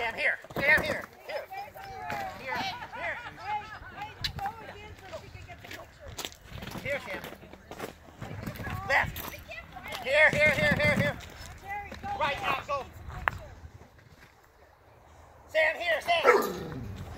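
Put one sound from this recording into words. A dog barks excitedly.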